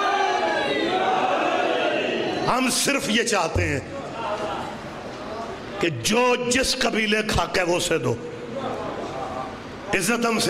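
A middle-aged man speaks forcefully and passionately through a loudspeaker microphone.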